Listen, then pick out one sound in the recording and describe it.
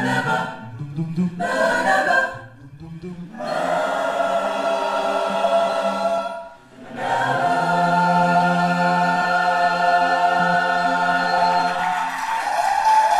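A mixed choir sings a slow, sustained melody in an echoing hall.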